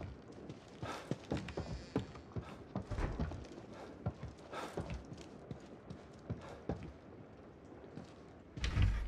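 Footsteps thud slowly across creaking wooden floorboards.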